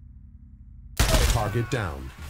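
A pistol fires a single shot.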